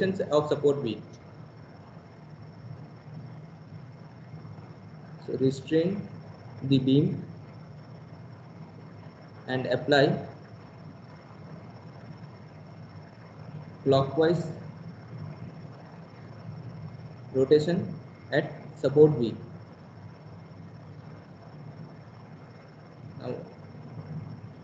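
A man speaks calmly in short phrases through an online call, between long pauses.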